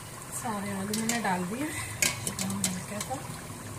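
A metal skimmer clinks against a pan.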